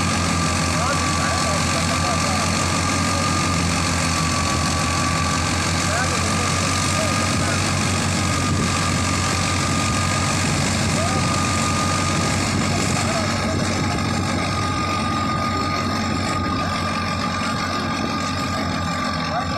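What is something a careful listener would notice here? A tractor engine runs with a steady, loud chugging drone.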